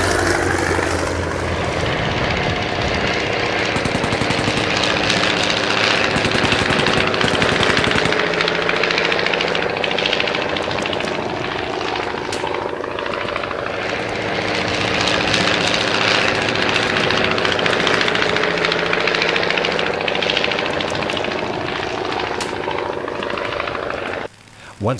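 A propeller engine drones steadily as a small biplane flies past, its pitch rising and falling.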